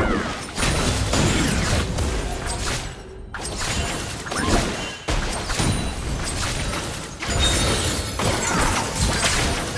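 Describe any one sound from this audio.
Electronic game spell effects whoosh and crackle.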